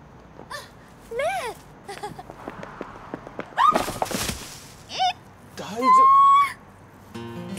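A young woman cries out loudly nearby.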